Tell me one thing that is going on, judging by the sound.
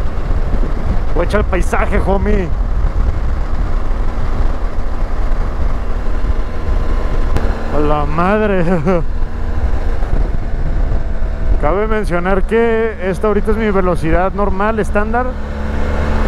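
Wind buffets loudly past a moving motorcycle.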